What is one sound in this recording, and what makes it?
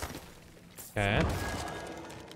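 A magic spell bursts with a rising, ringing whoosh.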